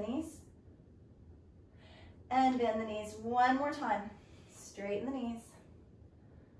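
A woman speaks calmly and clearly, as if giving instructions.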